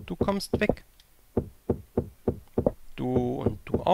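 A pickaxe chips at stone with quick, repeated knocks.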